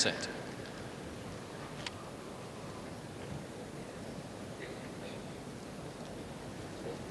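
A seated crowd murmurs quietly outdoors.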